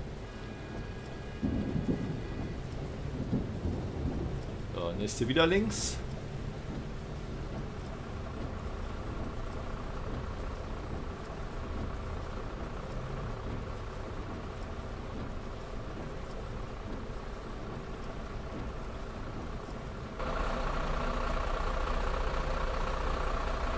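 A bus engine hums steadily.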